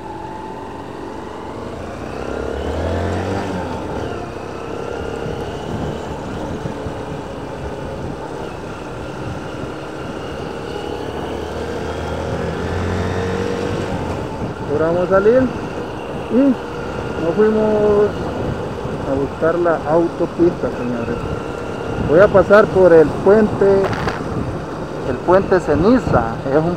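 A motorcycle engine hums and shifts in pitch as the bike rides along.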